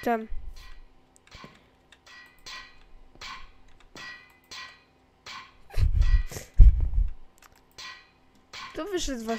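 Footsteps tap steadily on hard blocks.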